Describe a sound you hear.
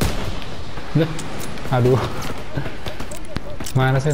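A rifle bolt clacks as it is reloaded.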